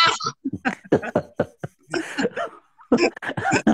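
An elderly man laughs over an online call.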